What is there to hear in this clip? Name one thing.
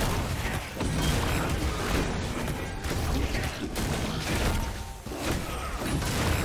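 Magic spell effects crackle and whoosh in a fight.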